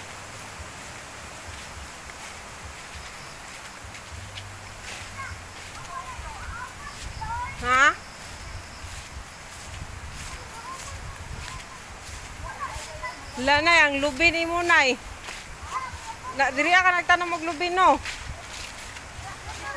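Wind blows outdoors, rustling leaves.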